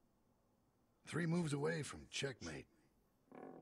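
A middle-aged man speaks in a low, gruff voice.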